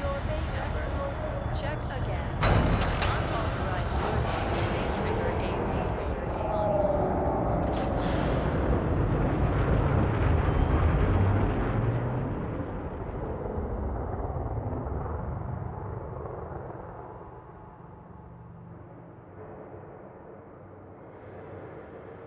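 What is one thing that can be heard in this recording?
A hovering vehicle hums and rumbles steadily, then slowly fades.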